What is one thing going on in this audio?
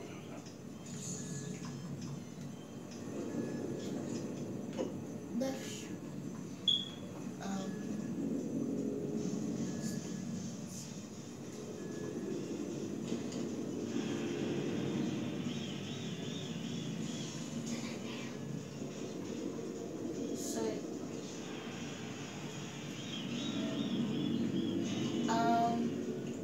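A video game's rumbling sounds and effects play through a television speaker.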